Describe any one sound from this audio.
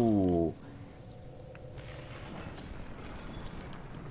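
Glass shatters and pieces clatter.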